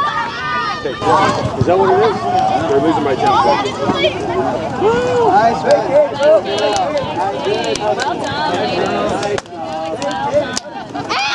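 A crowd of adults and girls cheers and chatters loudly outdoors.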